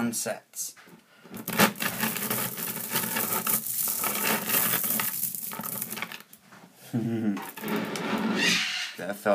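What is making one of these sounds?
Small metal magnetic balls clatter and rattle as hands crush them together.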